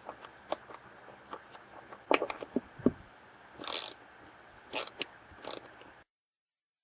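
A ratchet clicks as a bolt is tightened.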